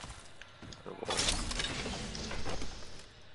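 A metal supply bin creaks open with a clank.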